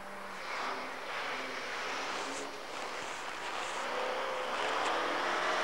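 A rally car engine revs hard as the car speeds closer through snow.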